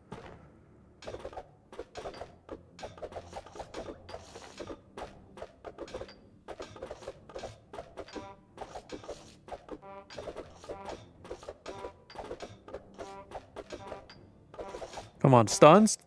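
Game battle effects clatter and thump in quick bursts.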